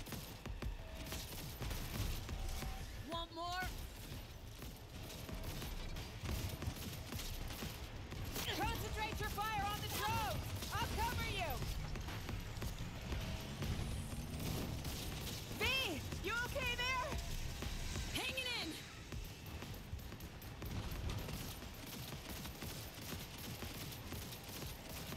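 Rapid gunfire rattles and booms.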